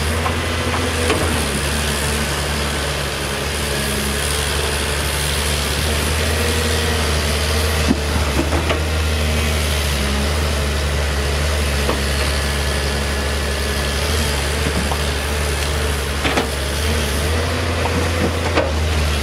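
A diesel excavator engine rumbles steadily in the distance.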